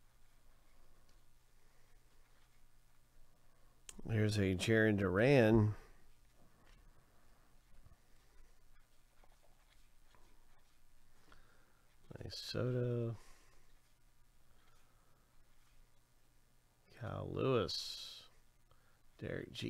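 Trading cards rustle and slide softly between hands.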